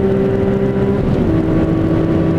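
A straight-six sports car engine drops in pitch as the driver shifts up a gear.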